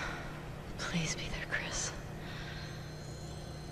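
A woman speaks softly.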